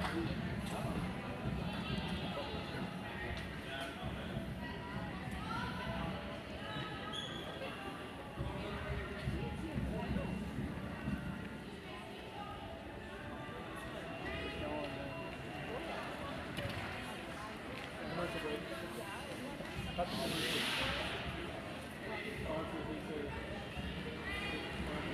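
Skate blades scrape on ice.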